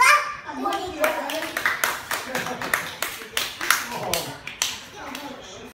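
A young girl claps her hands in a quick rhythm.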